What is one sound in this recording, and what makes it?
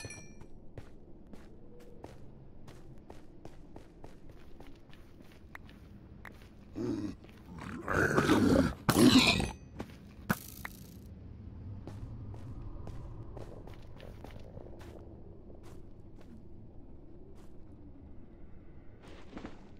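Footsteps crunch softly on gravelly ground.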